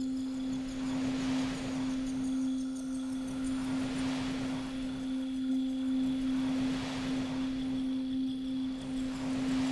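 Large waves crash and roar as they break.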